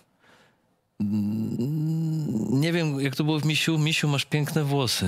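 A middle-aged man speaks close into a microphone with animation.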